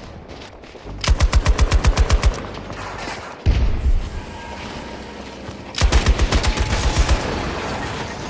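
A light machine gun fires in rapid bursts.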